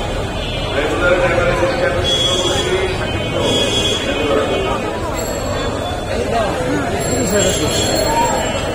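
A crowd of men talks and murmurs all around, outdoors.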